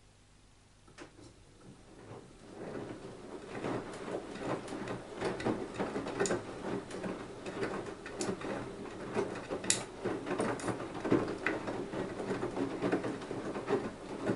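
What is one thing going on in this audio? Small items clink and knock inside a washing machine drum.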